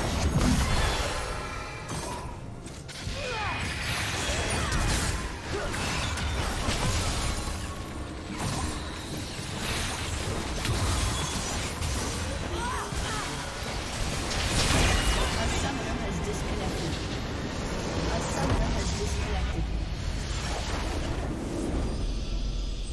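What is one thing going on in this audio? Game spell effects crackle and blast in a busy fight.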